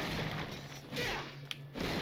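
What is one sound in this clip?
A blade whooshes through the air and clangs.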